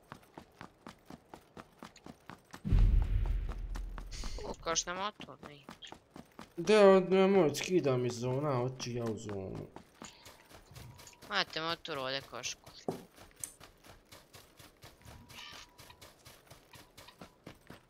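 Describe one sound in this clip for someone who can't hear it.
Footsteps patter quickly and steadily on the ground.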